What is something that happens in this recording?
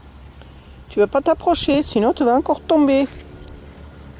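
A small dog yelps and barks close by.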